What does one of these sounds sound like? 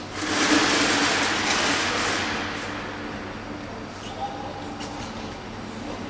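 A man praises a dog in a lively voice, close by.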